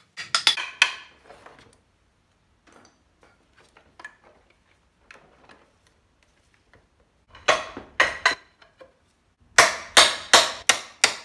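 A hammer bangs sharply on a metal engine casing.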